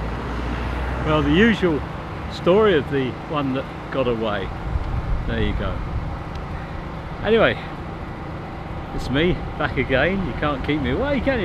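An elderly man speaks close by, calmly and cheerfully, outdoors.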